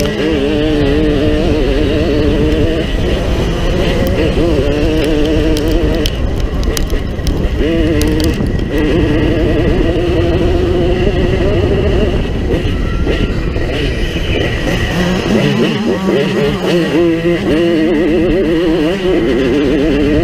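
Other dirt bike engines buzz nearby.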